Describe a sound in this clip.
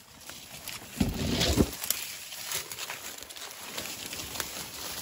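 Footsteps crunch and rustle through dry leaves.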